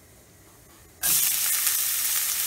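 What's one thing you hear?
Chopped onion sizzles loudly in hot oil.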